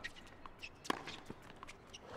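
A tennis ball is struck with a sharp pop.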